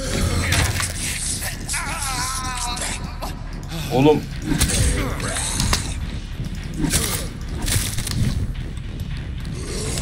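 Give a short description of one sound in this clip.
Heavy melee blows land with dull thuds and wet crunches.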